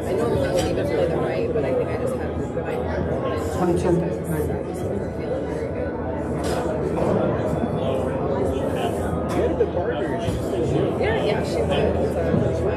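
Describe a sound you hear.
A racquetball smacks hard against the walls of an echoing court.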